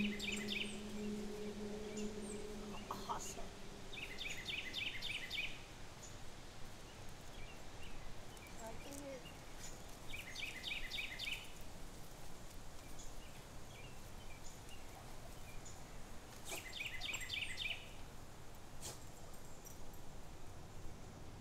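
A pileated woodpecker pecks at a rotting log.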